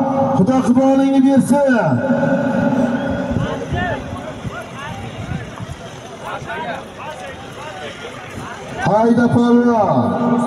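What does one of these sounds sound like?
A man shouts loudly nearby in long drawn-out calls.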